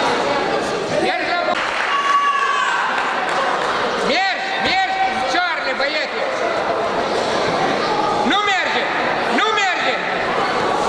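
Spectators shout to the wrestlers.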